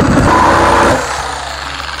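A power saw buzzes loudly as it cuts through wood.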